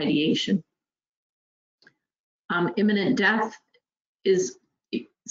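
A woman speaks calmly through an online call microphone, in short phrases with pauses.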